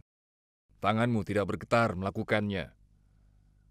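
A man speaks intensely, close by.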